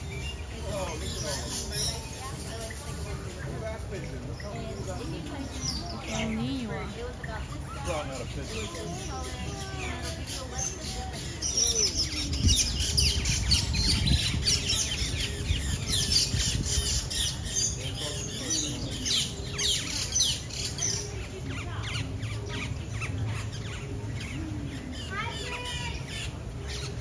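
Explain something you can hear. Birds chirp and twitter all around.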